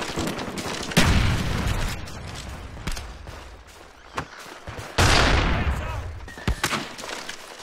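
Loud explosions boom and rumble with long echoes.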